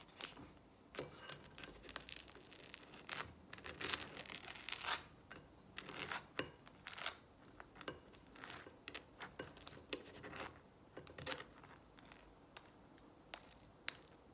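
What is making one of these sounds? A knife scrapes spread across toasted bread.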